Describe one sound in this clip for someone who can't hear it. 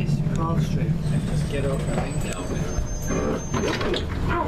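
Train brakes squeal briefly.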